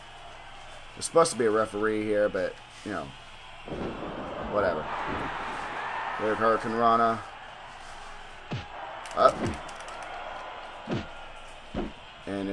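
Heavy thuds and slams sound as wrestlers hit each other.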